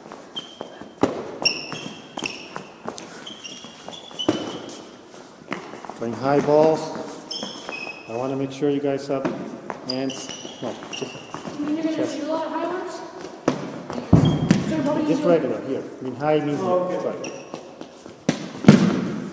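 A ball thuds on a hard floor and bounces in an echoing hall.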